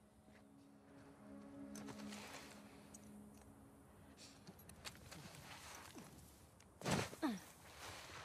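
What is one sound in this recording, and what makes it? Grass rustles as a person crawls through it.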